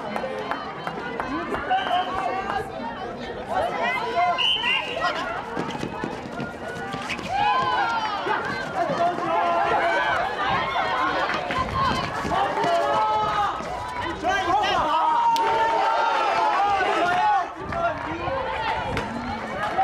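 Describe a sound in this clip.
Young women shout calls to each other.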